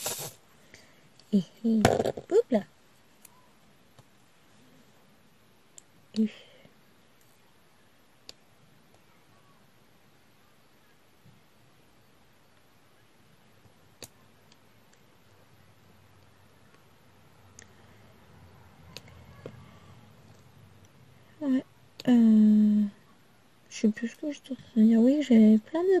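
A pen tip taps softly against tiny beads.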